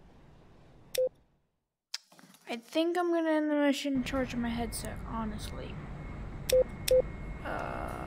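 A button clicks sharply.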